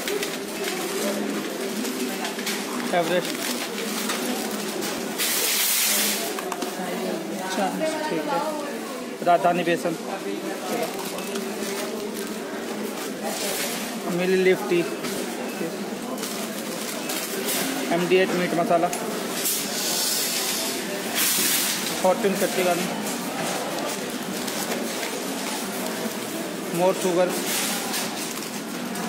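A paper receipt rustles in a hand.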